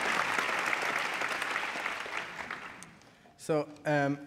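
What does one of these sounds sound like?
A crowd applauds and then fades out.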